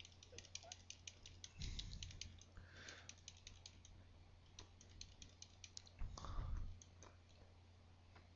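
Video game attack effects patter in quick, faint bursts.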